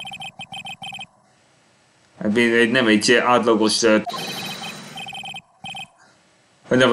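Short electronic blips tick rapidly in bursts.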